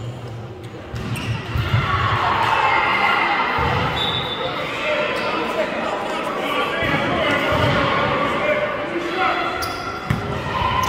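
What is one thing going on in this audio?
Several young men talk and call out nearby in a large echoing gym.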